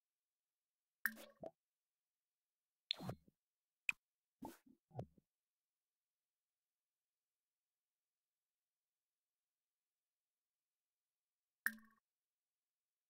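Short game interface chimes and clicks sound now and then.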